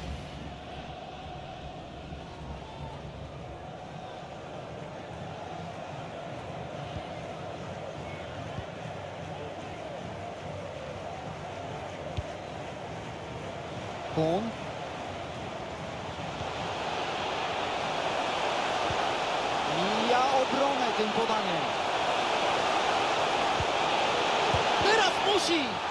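A stadium crowd roars steadily, swelling louder as the attack nears the goal.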